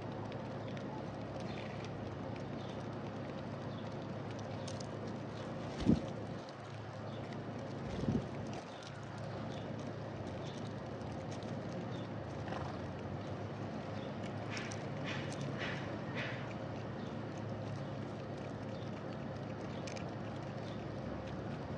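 Doves and sparrows peck at seeds close by.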